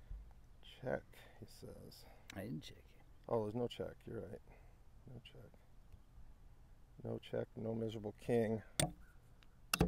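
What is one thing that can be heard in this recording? Two men talk calmly nearby.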